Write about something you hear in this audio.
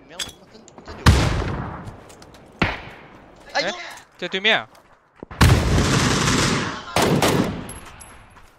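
Gunshots crack loudly.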